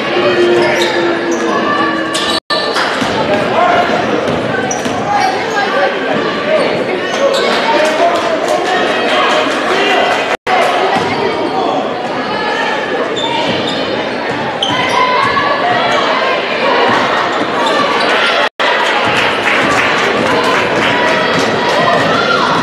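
A crowd in a large echoing gym cheers and chatters throughout.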